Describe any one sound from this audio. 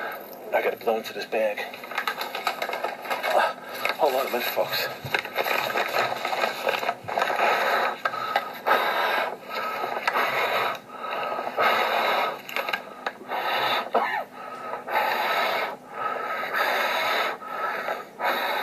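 A man talks with animation close to a phone microphone.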